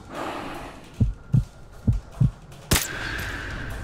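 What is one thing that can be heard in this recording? Suppressed rifle shots thump several times in quick succession.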